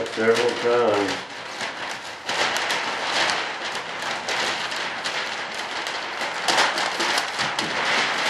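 Plastic sheeting crinkles and rustles as it is handled.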